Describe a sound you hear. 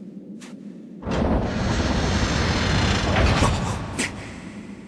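A heavy stone door grinds and rumbles as it slides shut.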